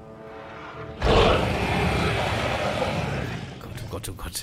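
A large dinosaur roars loudly and rumbles.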